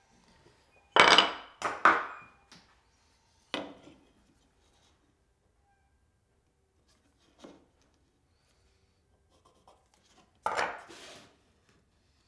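Pieces of wood knock against each other.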